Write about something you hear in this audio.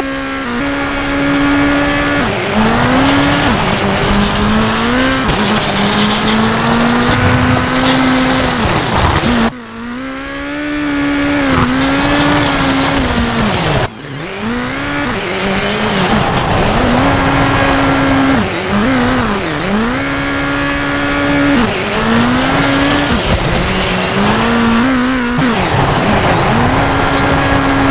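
A turbocharged rally car engine revs hard, rising and dropping through gear changes.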